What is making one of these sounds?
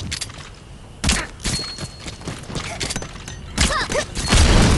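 Muffled gunshots crack in short bursts.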